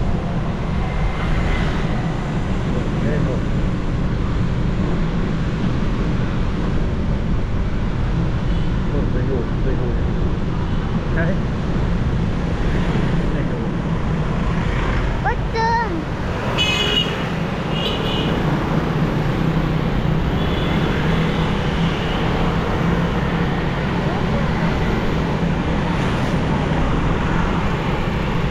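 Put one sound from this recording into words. A motorbike engine hums steadily nearby.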